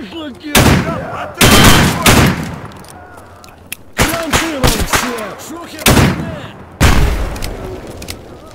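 Gunshots boom and echo loudly off hard walls.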